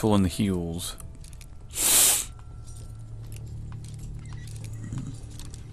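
A lockpick scrapes and clicks softly inside a metal lock.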